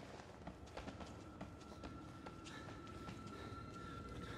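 Footsteps thud on a hard floor at a steady pace.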